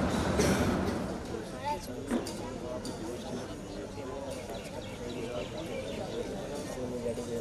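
A group of boys murmurs quietly outdoors.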